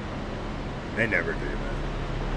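A man briefly calls out close to a microphone.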